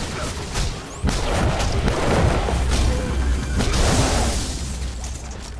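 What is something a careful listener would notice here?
A loud blast booms and roars.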